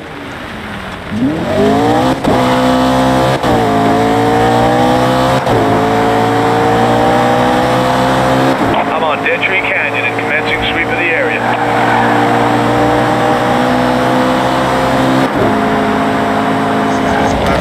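A car engine revs hard, rising in pitch and dropping briefly at each gear change.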